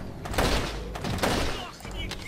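A rifle fires a sharp shot.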